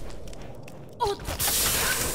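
A blow strikes with a sharp thud.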